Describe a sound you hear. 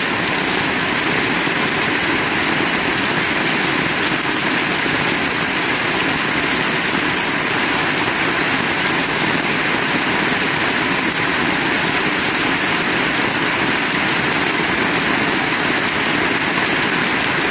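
Rain splashes on a wet road.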